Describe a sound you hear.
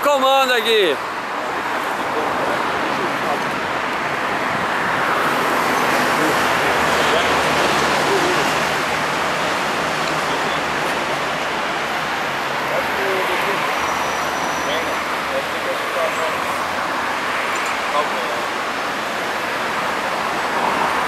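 Traffic hums steadily in the distance.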